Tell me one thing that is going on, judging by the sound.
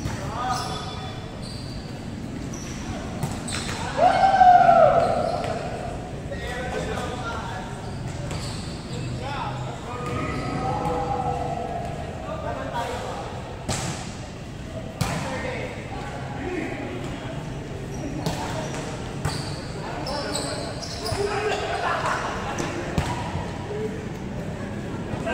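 Hands strike a volleyball in a large echoing hall.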